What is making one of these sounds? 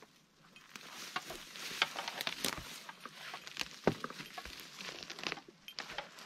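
Wood and bark crackle and scrape as a worker handles a tree trunk.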